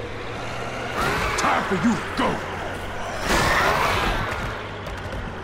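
Zombies groan and snarl as a truck hits them.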